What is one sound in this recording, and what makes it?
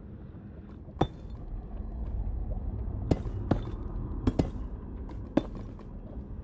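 Stone blocks are placed with short dull thuds.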